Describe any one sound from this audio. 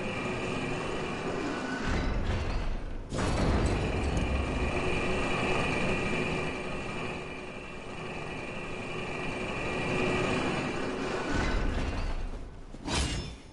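A heavy lift rumbles and grinds as it rides down.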